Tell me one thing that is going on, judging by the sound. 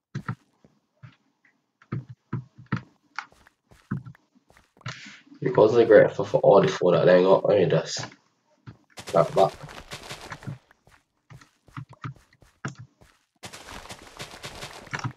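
Footsteps thud softly on grass and wood.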